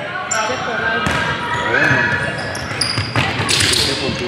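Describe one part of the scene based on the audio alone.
A basketball thumps on the floor.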